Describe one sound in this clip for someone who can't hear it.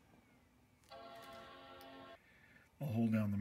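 A computer plays a short startup chime.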